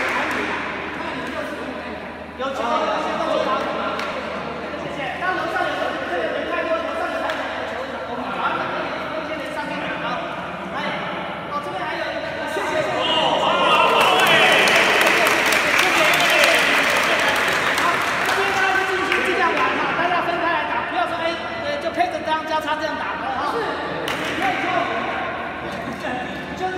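A crowd of people chatter in the background.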